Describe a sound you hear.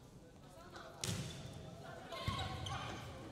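A volleyball is struck hard with a sharp smack in an echoing hall.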